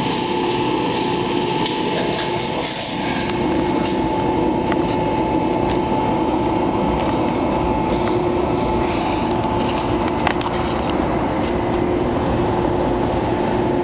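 Heavy machinery hums and drones steadily.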